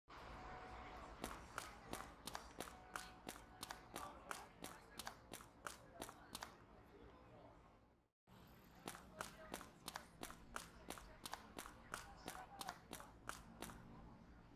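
Footsteps tap quickly on pavement as someone runs.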